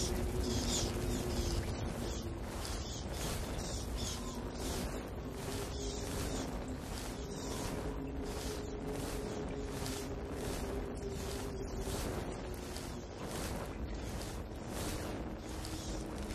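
Grass and leaves rustle in a steady rhythm as a body crawls over the ground.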